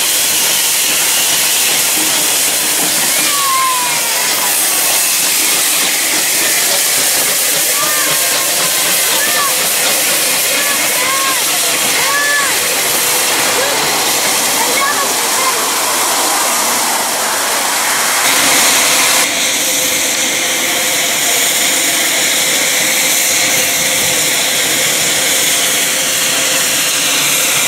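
A steam locomotive hisses and chuffs as it rolls slowly past.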